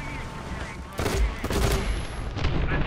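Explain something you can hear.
Shells explode nearby with loud booms.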